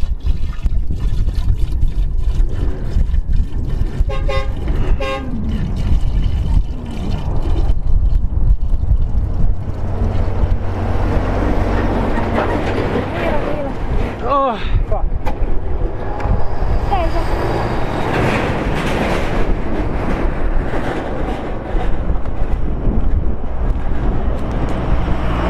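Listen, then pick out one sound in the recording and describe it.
Wind blows steadily, buffeting outdoors.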